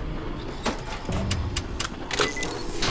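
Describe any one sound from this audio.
Metal switches click several times in quick succession.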